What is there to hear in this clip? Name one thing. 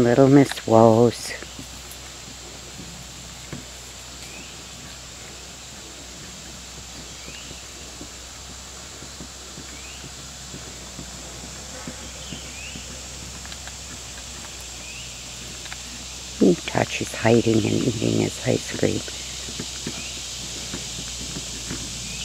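A wolf sniffs and snuffles at the ground close by.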